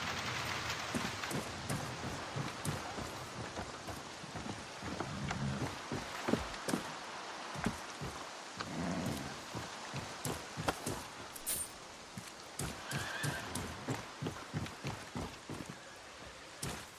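Footsteps thud on wooden stairs and boards.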